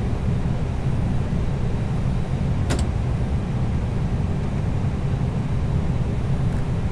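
A jet airliner's engines rumble low and steady.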